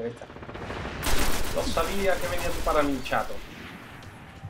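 Gunfire blasts in a rapid burst.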